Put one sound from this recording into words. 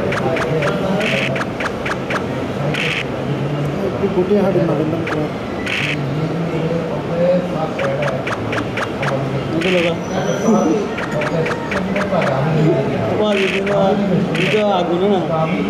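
A die rattles briefly as it is rolled, several times.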